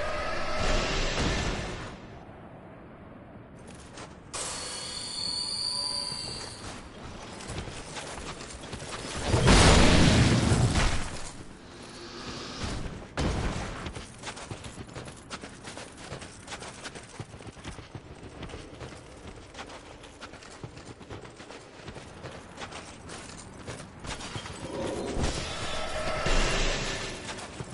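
Heavy armoured footsteps crunch through snow.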